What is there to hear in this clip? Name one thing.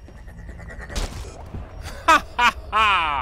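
A small device bursts with a sharp crackle of sparks.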